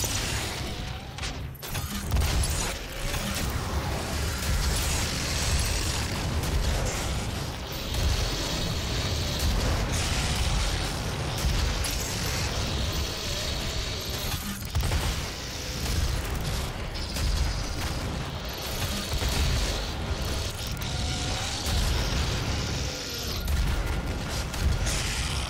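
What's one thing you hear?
A heavy gun fires rapid blasts.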